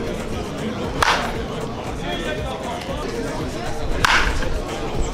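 A metal bat cracks sharply against a baseball.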